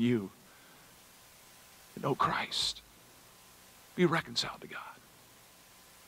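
An older man speaks calmly into a microphone, in short phrases with pauses.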